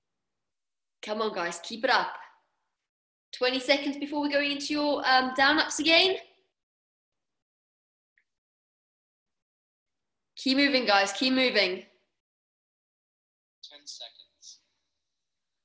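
A young woman talks casually and cheerfully into a microphone, in short bursts with long pauses.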